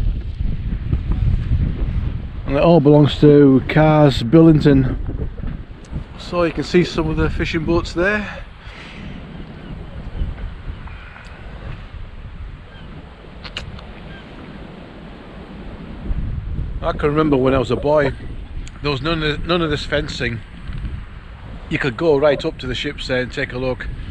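Wind gusts and rumbles across the microphone outdoors.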